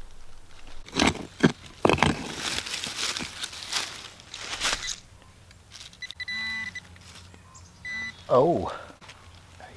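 A small shovel scrapes and digs into leafy soil.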